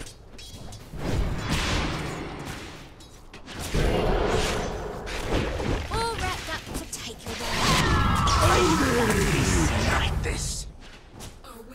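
Magical spell effects whoosh and crackle during a fight in a game.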